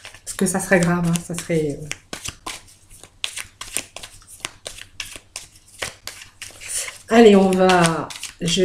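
Playing cards riffle and slap as they are shuffled close by.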